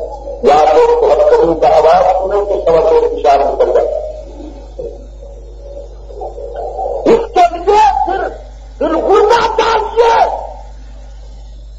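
A middle-aged man speaks calmly and closely into a microphone.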